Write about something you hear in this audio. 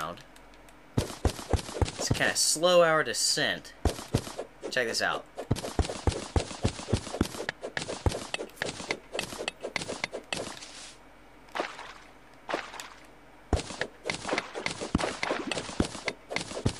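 A pickaxe chips rapidly at stone and sand with quick, sharp taps.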